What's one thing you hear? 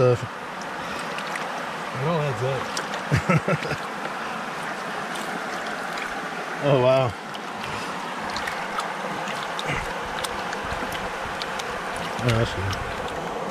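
Water splashes and sloshes as hands swirl it in a shallow pan.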